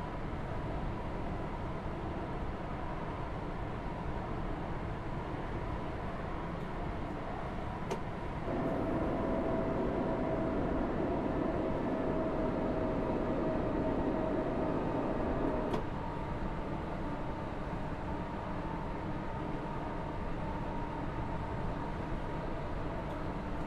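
A train rumbles steadily along the rails.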